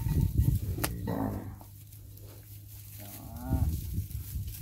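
A calf bleats nearby.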